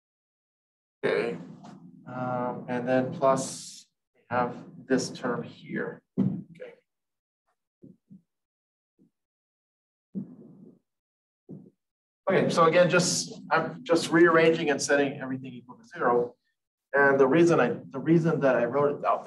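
A man speaks calmly and steadily, as if explaining to a class.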